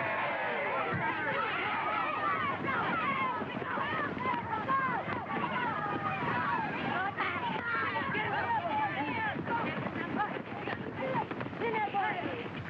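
A crowd of men shouts and yells in a rowdy brawl outdoors.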